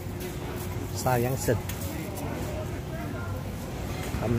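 Shopping carts rattle as they roll past.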